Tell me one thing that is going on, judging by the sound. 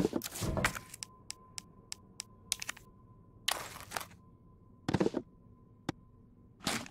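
Short menu clicks tick in quick succession.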